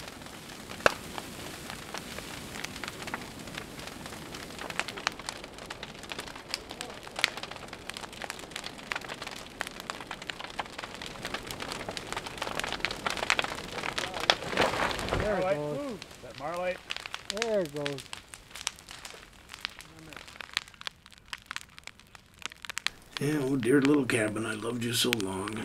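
A large fire roars and crackles loudly.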